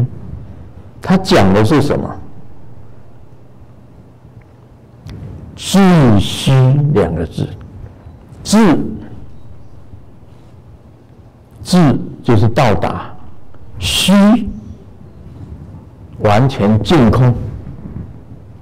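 An elderly man speaks slowly and calmly into a microphone, in short phrases with pauses.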